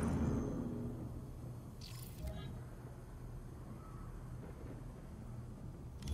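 A menu beeps and clicks.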